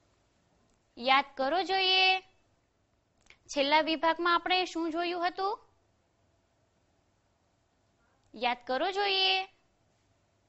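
A young woman speaks calmly and clearly into a microphone, in short phrases with pauses.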